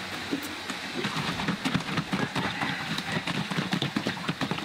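Liquid sloshes rapidly in a plastic jug being shaken.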